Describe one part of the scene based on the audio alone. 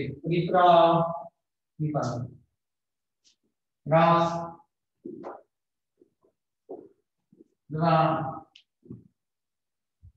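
A man gives instructions loudly in short bursts, in a room with some echo.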